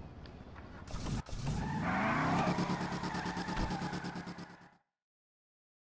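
A car engine starts and revs loudly.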